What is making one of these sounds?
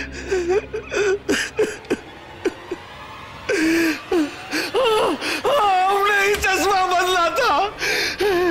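A middle-aged man sobs and wails loudly up close.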